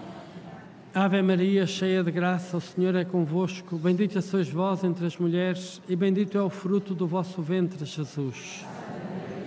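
An elderly man chants loudly through a microphone.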